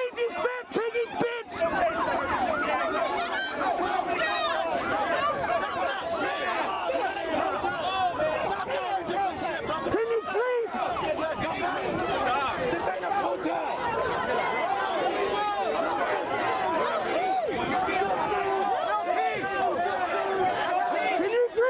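A crowd of men and women shout and talk over one another close by, outdoors.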